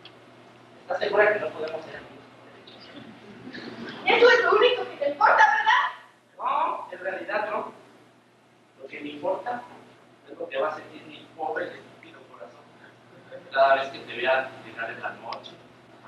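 A young woman speaks with animation in a hall, heard from the audience.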